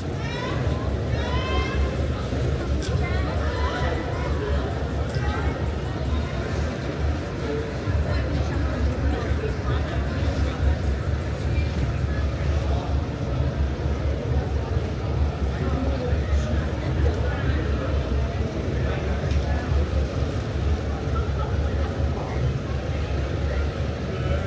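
Young women chat with animation close by outdoors.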